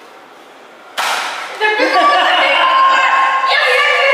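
Young children shout and laugh excitedly close by.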